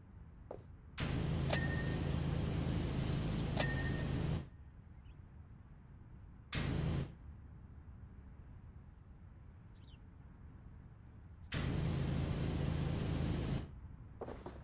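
A pressure washer sprays a hissing jet of water in bursts.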